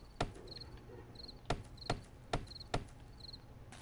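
Heavy blows knock against wood in quick bursts.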